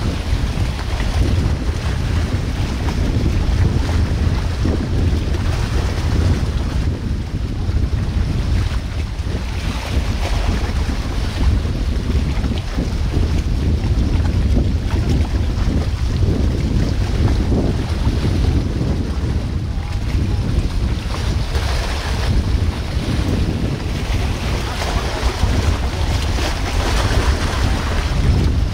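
Wind blows outdoors, buffeting loudly.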